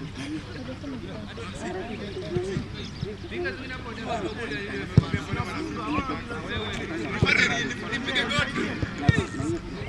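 Several young men talk among themselves nearby.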